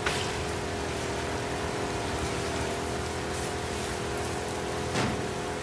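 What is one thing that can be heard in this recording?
A small outboard motor hums steadily.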